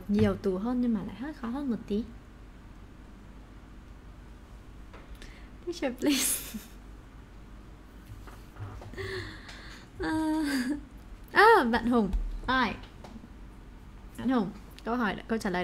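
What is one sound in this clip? A young woman speaks with animation close to a microphone, with pauses.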